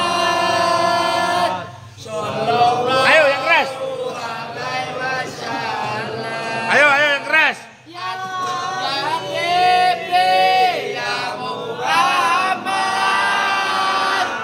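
A crowd of men chants and shouts loudly together close by, outdoors.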